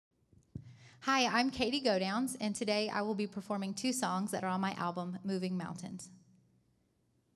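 A woman speaks clearly through a microphone and loudspeakers in a large hall.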